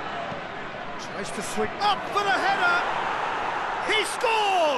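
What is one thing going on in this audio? A large crowd cheers louder as an attack nears the goal.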